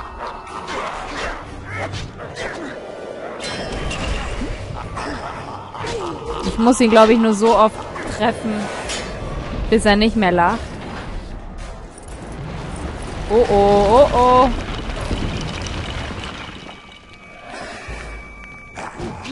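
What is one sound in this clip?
Swords clang and clash in quick blows.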